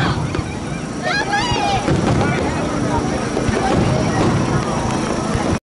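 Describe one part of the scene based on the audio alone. Young women exclaim and cheer excitedly close by.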